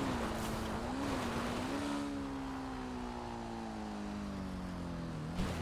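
A motorbike engine drones steadily, its pitch rising and dipping slightly.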